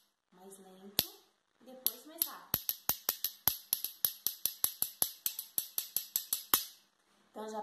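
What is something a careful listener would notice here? Metal spoons clink together in a quick, steady rhythm.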